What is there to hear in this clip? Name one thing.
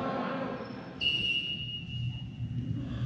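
A referee's whistle blows.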